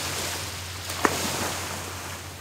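A body dives into the sea with a loud splash.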